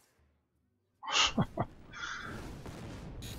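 A fiery blast whooshes and roars loudly.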